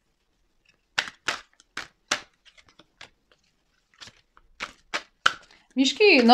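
Playing cards shuffle and tap in a woman's hands.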